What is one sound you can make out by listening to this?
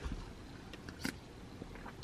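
A young woman gulps water from a bottle.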